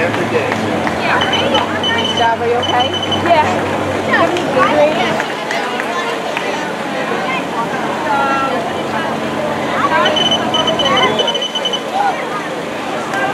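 A crowd of spectators cheers and chatters outdoors.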